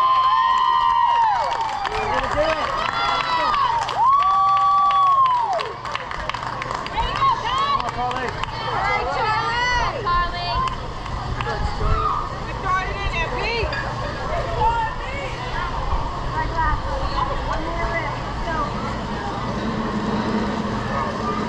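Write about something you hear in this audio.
Children shout and cheer outdoors.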